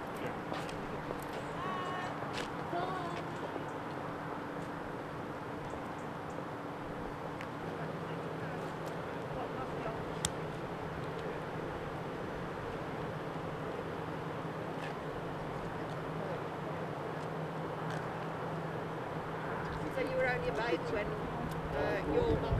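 Footsteps walk slowly on a paved path.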